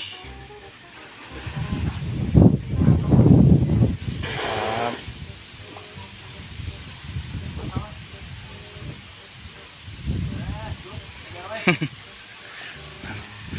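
Water splashes from a hose onto the ground.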